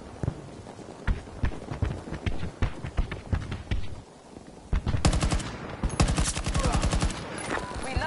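Rifle gunfire cracks in rapid bursts, with sharp echoing shots.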